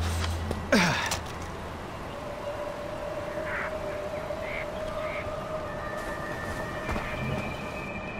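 Footsteps crunch on gravel and grass.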